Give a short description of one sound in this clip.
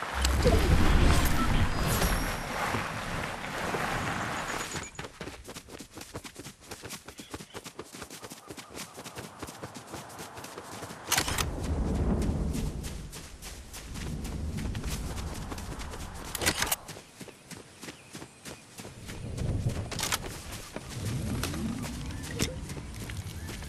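Quick footsteps run through grass.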